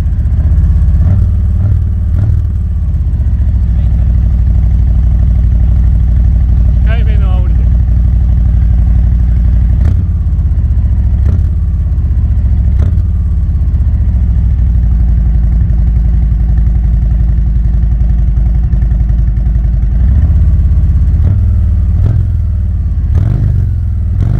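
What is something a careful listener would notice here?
A motorcycle engine idles close by with a deep, loud rumble.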